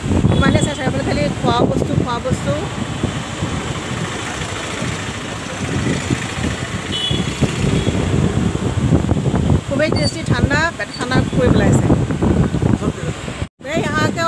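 Street bustle with traffic and chatter fills the air outdoors.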